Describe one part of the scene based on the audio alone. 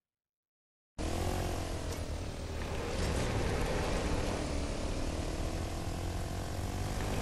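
A quad bike engine revs and hums.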